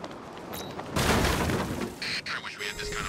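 Bricks crash and tumble as a wall is smashed through.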